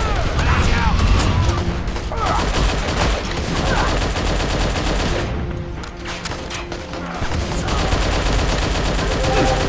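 Laser shots zap and whine.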